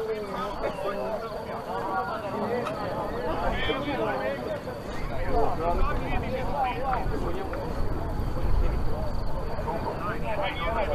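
Men talk with one another outdoors on an open field.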